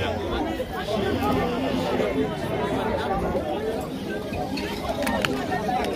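A crowd of men and women chatter and call out nearby outdoors.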